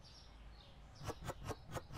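Plastic bottles are set down on a shelf with quick clicks.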